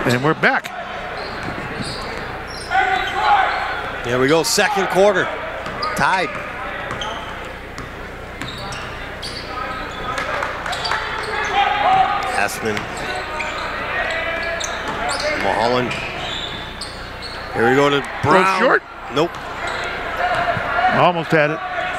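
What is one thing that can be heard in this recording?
A crowd murmurs and cheers in a large echoing gym.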